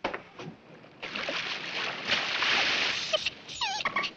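Water splashes loudly as a dolphin dives.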